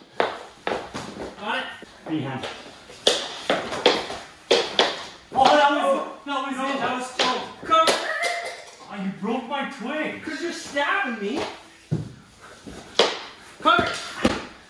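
Two young women shout and laugh excitedly, close by.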